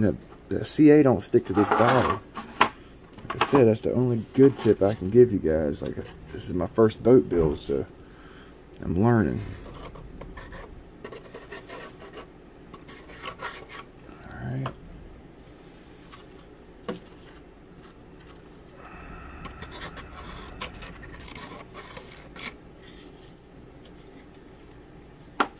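A light wooden model taps and creaks softly as it is handled.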